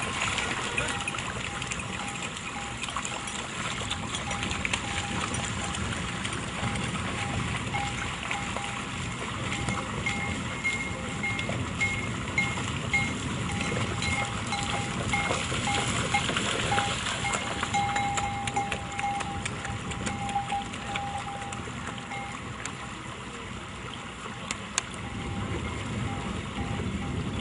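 Water splashes as a man and a calf wade through a river.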